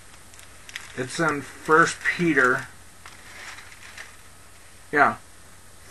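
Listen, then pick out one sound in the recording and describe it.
A man speaks calmly and briefly into a headset microphone, close by.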